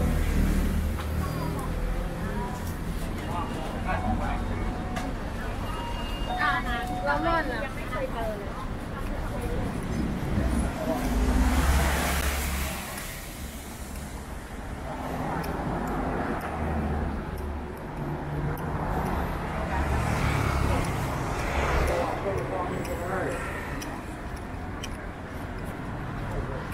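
Traffic rumbles past on a busy street outdoors.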